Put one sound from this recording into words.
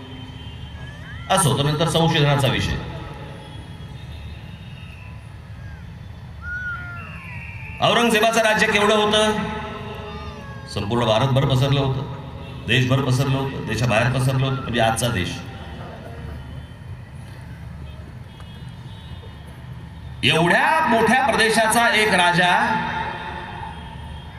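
A large crowd murmurs in the open air.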